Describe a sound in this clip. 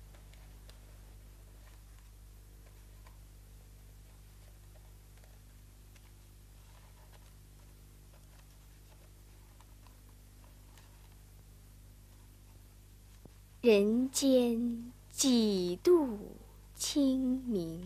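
A brush softly scratches across paper.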